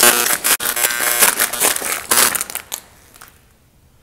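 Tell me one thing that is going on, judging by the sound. Footsteps crunch over loose debris and broken plaster.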